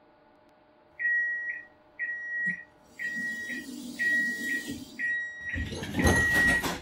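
An electronic warning tone beeps repeatedly in a tram cab.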